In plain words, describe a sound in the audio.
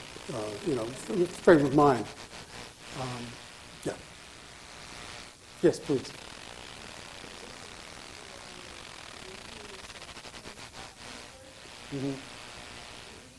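A man speaks calmly through a microphone in a large hall, with pauses.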